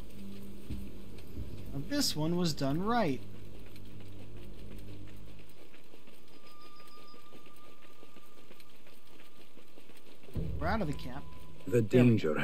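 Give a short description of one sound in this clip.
Footsteps crunch softly on dry ground and grass.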